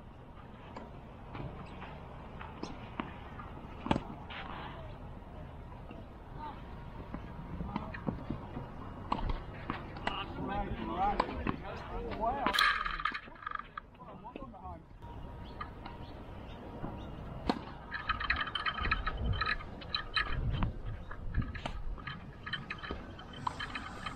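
Tennis balls pop off rackets in a rally outdoors.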